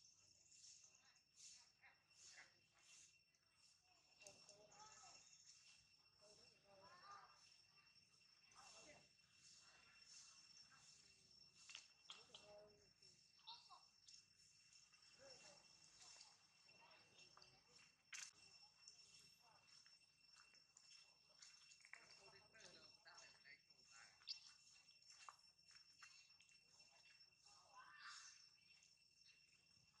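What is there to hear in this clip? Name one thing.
A monkey munches and crunches on corn kernels.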